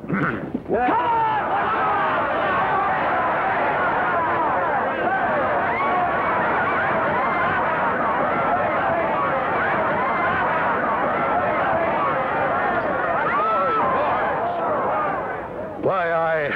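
A large crowd shouts and jeers loudly.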